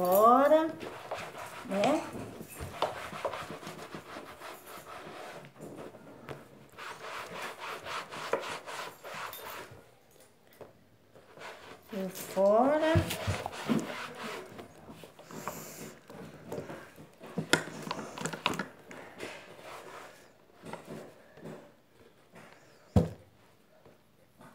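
Objects rustle and clatter as hands sort through them.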